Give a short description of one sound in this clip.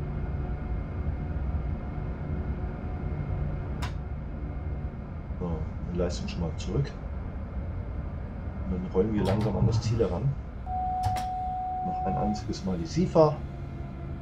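A train rumbles low and steadily as it rolls slowly.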